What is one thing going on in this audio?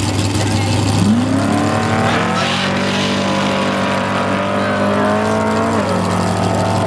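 A race car engine roars and climbs in pitch through its gears as the car speeds off.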